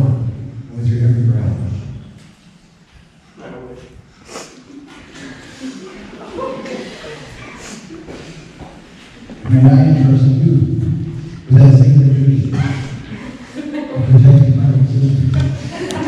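A man speaks calmly through a microphone, with a slight echo.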